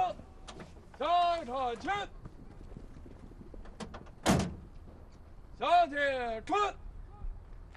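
A man shouts commands loudly outdoors.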